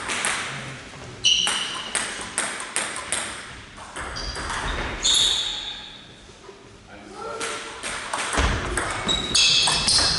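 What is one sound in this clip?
Sneakers squeak on a hall floor.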